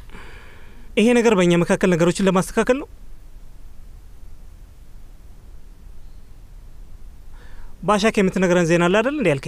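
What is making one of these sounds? A young man speaks calmly and firmly, close by.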